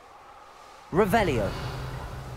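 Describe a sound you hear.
A magic spell bursts with a sharp crackling blast.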